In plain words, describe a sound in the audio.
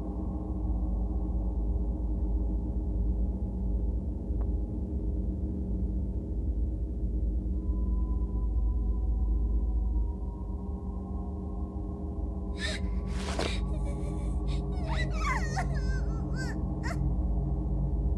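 Slow, gloomy music with low sustained tones plays steadily.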